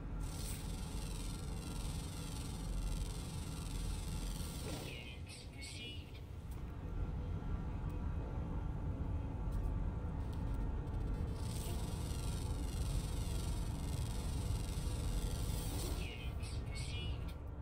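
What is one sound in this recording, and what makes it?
A scanner gives off a high electronic hiss.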